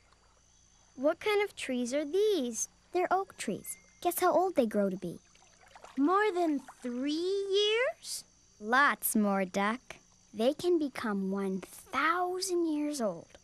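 A young girl talks cheerfully and close by.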